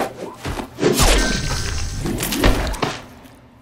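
A blade slashes and strikes with a loud crunch.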